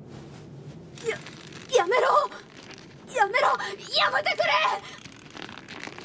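A young man cries out, pleading desperately.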